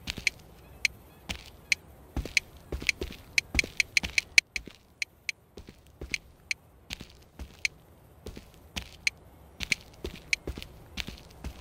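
Short menu clicks tick rapidly as a selection scrolls through a list.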